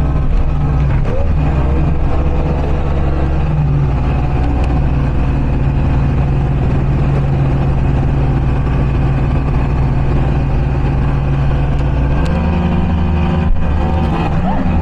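A motorboat engine roars steadily at speed.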